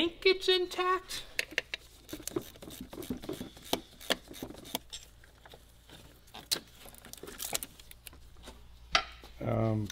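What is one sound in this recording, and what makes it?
Metal tools click and clank against an engine.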